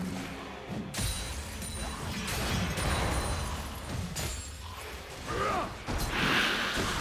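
Game spell effects crackle and boom during a fight.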